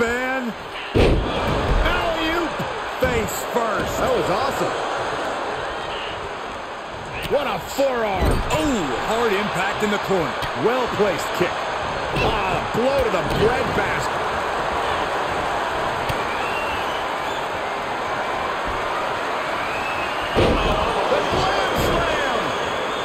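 Bodies slam hard onto a wrestling ring mat.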